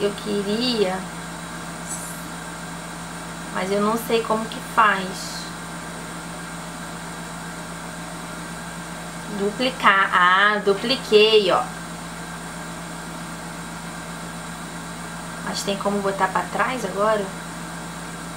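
A young woman talks calmly into a nearby microphone, in short bursts.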